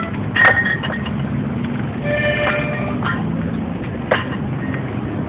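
A metal spray can clinks and knocks.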